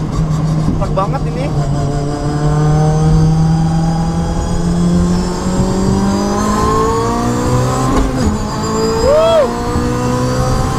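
Wind and tyre noise rush steadily past the car.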